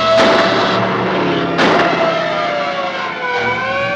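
A car engine roars as the car speeds by.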